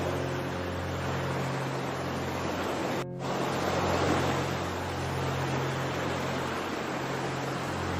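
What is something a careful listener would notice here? Calm sea water ripples and laps gently.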